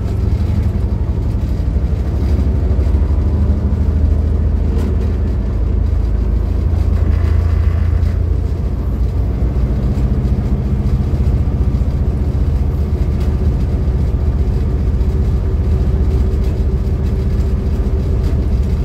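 Train wheels clack over rail joints.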